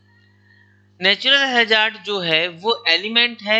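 A man speaks calmly and clearly into a close microphone, as if lecturing.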